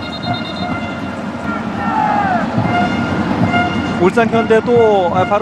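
A large stadium crowd chants and cheers steadily outdoors.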